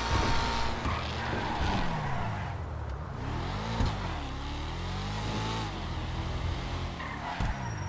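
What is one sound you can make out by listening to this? Tyres screech as a car skids through a turn.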